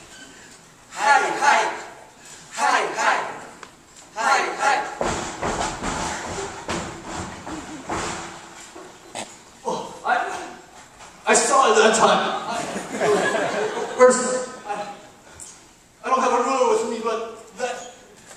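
Children recite lines loudly from a stage in an echoing hall.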